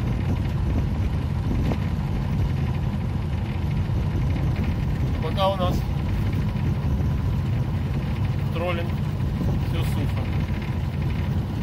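Choppy waves lap against a small boat.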